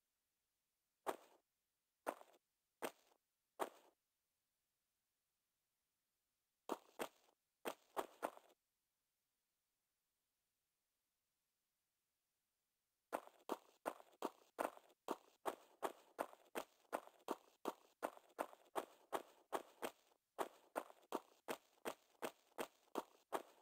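Footsteps run on a stone floor, with a slight echo.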